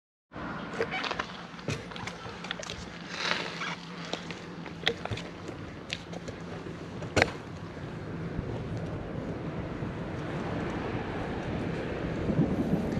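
Wind rushes steadily past, growing a little stronger.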